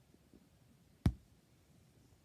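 A bar of chocolate snaps in two.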